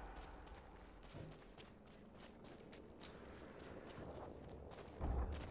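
Quick footsteps crunch on rocky ground.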